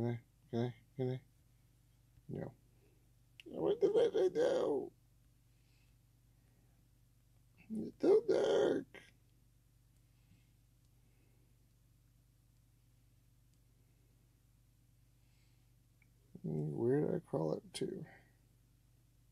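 A man speaks in short bursts into a headset microphone, with animation.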